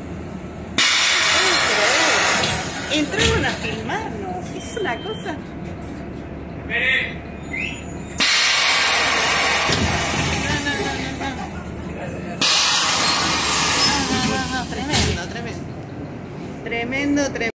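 A bus engine rumbles.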